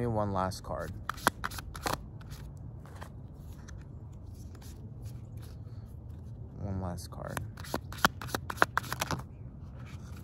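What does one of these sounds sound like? Playing cards are shuffled with quick crisp flicks.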